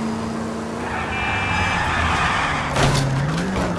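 Car tyres screech as the car skids sideways to a stop.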